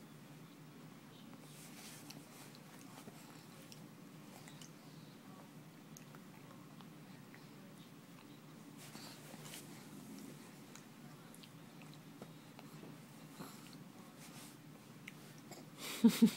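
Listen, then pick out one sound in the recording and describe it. A baby babbles softly close by.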